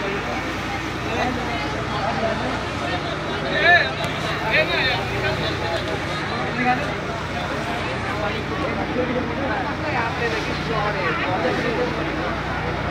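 Men and women chatter nearby in a crowd.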